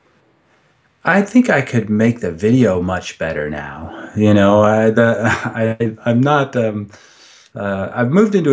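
A middle-aged man speaks calmly and closely into a microphone, as if on an online call.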